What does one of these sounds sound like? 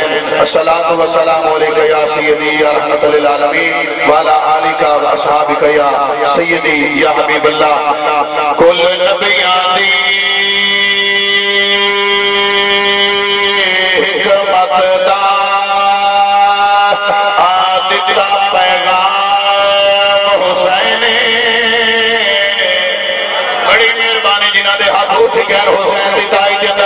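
A man chants loudly and with feeling into a microphone, heard through loudspeakers.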